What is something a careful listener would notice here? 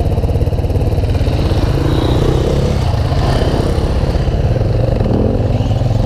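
Another dirt bike revs as it pulls away nearby.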